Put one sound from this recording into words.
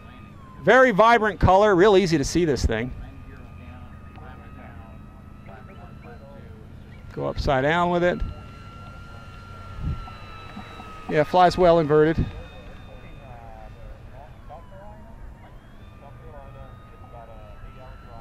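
A model plane's electric motor whines steadily overhead.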